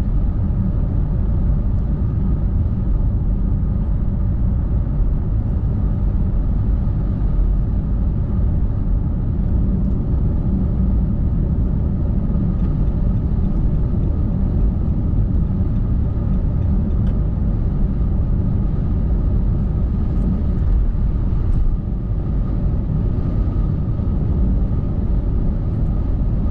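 A car drives steadily along a highway, with a low, constant road rumble from inside.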